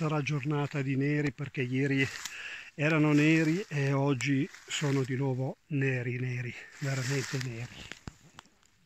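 A middle-aged man talks calmly close to a microphone.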